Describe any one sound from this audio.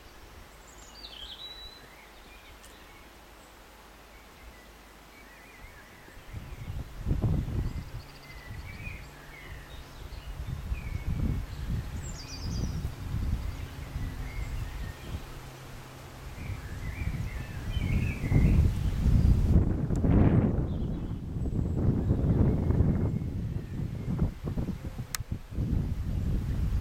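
Wind rustles through the leaves of trees outdoors.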